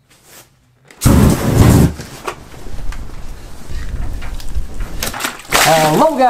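Flames roar and crackle loudly.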